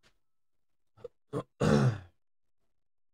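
A man speaks briefly into a close microphone.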